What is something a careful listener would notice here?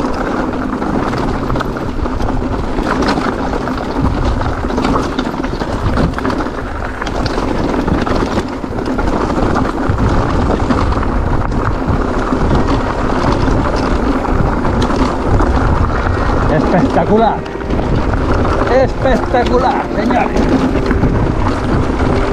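Bicycle tyres rattle and crunch over a rocky trail.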